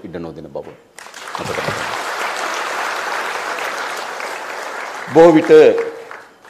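A crowd applauds in a large hall.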